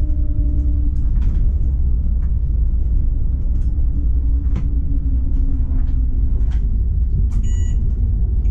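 A tram rumbles steadily along the rails.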